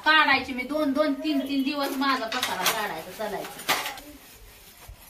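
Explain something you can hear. A woman talks nearby.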